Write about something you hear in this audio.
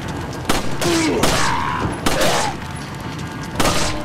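A man groans and shouts.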